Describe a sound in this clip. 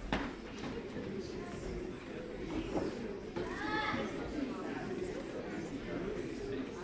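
Many men and women chat at once, echoing in a large hall.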